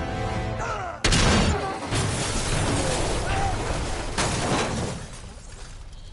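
Heavy metal wreckage crashes and scrapes down a slope.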